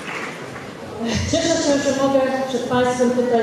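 A woman speaks calmly into a microphone over a loudspeaker in a large room.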